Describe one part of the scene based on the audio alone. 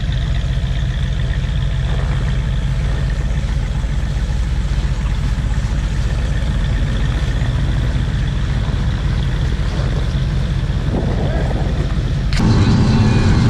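A tracked snow vehicle's engine idles with a steady low hum.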